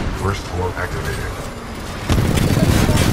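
A heavy laser beam roars loudly.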